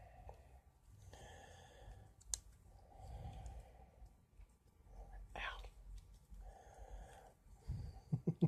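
Pliers click and snip at a small wire.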